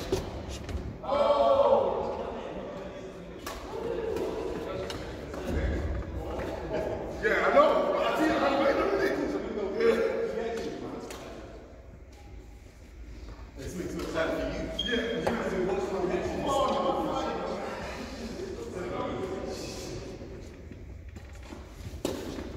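Men talk and call out to each other in a large echoing hall.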